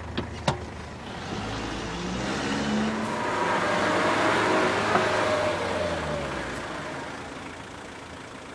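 A van engine hums as the van drives closer and passes.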